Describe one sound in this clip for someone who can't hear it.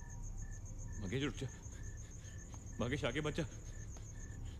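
A man speaks in a low voice.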